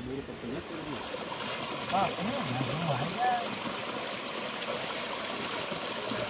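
Muddy water splashes and churns as a person wades through it.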